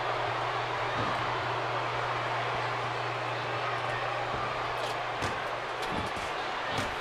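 Blows land with dull thuds.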